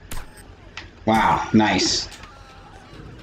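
A young man exclaims loudly, close to a microphone.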